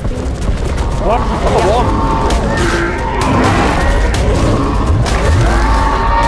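Creatures growl and screech while fighting.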